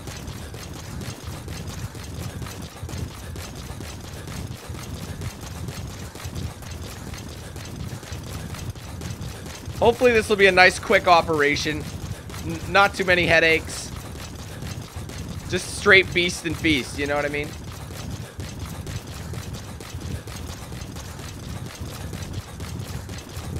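Footsteps run quickly over gravel.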